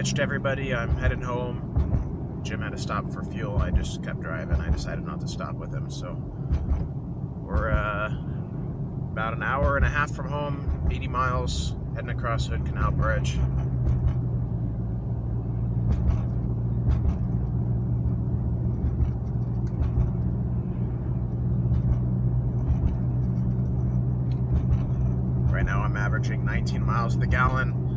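Tyres roll on the road with a low, steady rumble.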